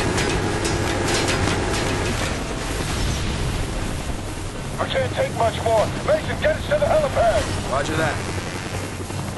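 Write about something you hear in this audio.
A helicopter engine and rotor roar steadily.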